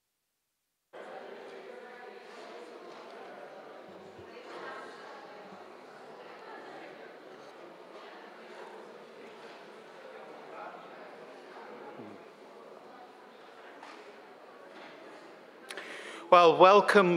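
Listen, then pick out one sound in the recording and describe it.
A man speaks calmly into a microphone through loudspeakers in a large echoing hall.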